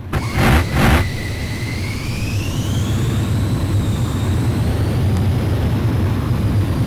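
A jet engine whines, rising in pitch.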